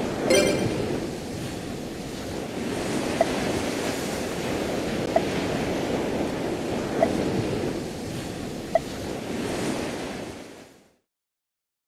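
Game background music plays steadily, then fades out.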